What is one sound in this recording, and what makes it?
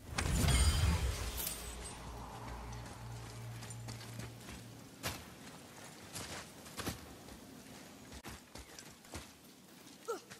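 Heavy footsteps crunch on snow and stone.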